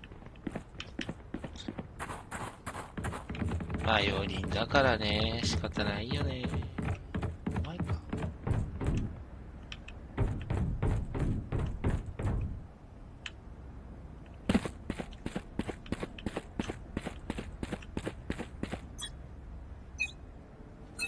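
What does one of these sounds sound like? Quick footsteps patter on a hard floor.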